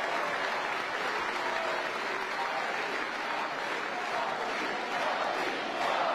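A crowd claps and cheers loudly.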